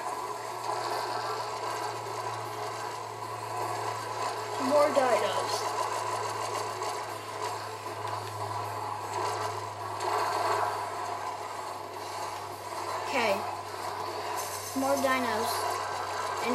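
Electronic game sounds play from a television loudspeaker in a room.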